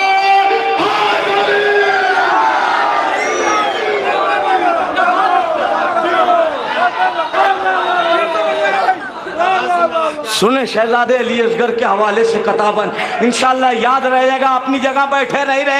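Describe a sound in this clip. A young man recites poetry with passion into a microphone through loudspeakers.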